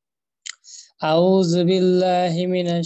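A man chants in a long, drawn-out voice over an online call.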